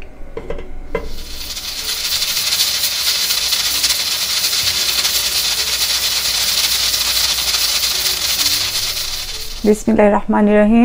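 A pressure cooker hisses loudly with escaping steam.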